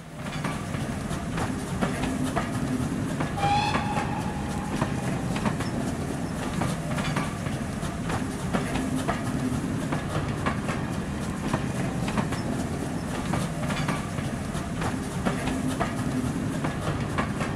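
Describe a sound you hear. A train rumbles steadily past close by.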